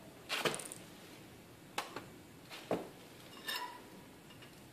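Metal pieces clank and rattle as they are handled.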